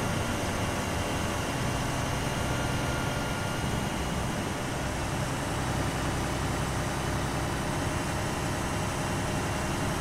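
An armoured vehicle's engine drones steadily as it drives along a road.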